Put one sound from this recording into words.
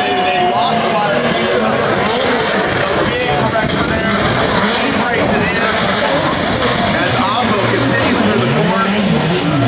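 Drift cars rev hard while sliding through a corner, heard across a racetrack.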